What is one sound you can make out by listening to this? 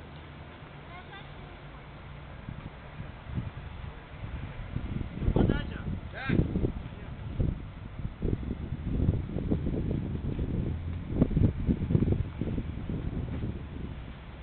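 Wind gusts rumble against the microphone outdoors.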